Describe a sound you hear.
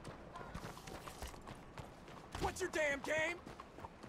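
A horse's hooves clop past close by.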